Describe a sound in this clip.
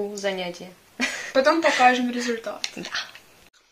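A young woman laughs close by.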